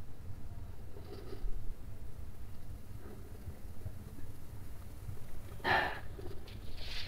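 A man close by breathes out sharply through his nose.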